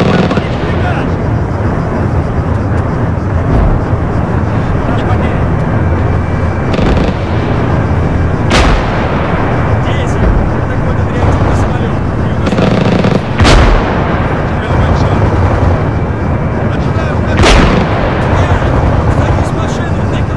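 Tank engines rumble steadily.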